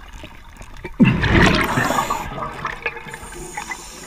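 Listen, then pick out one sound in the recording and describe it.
Air bubbles from a diver's breathing gear rush and gurgle underwater.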